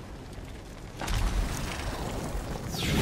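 A large creature roars with a deep growl.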